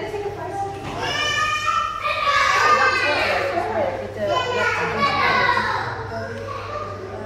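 A young girl squeals and exclaims excitedly close by.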